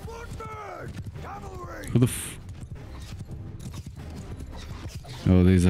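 Horse hooves thud steadily on dry ground.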